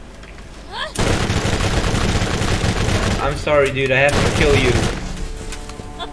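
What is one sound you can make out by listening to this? A gun fires in rapid bursts.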